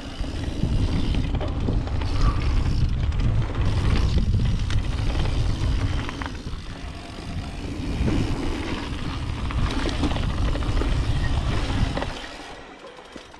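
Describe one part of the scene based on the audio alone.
A bike chain and frame rattle over bumps.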